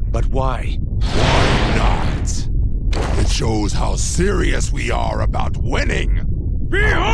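A man with a gruff voice answers with animation.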